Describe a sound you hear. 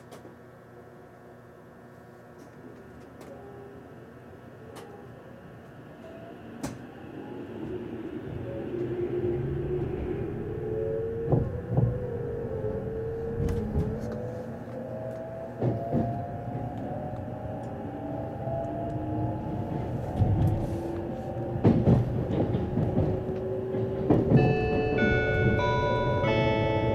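Train wheels rumble and clack over the rails.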